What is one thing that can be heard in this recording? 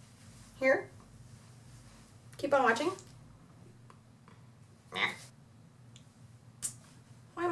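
A young woman speaks close to a microphone in short, lively bursts.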